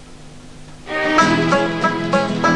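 An orchestra starts to play.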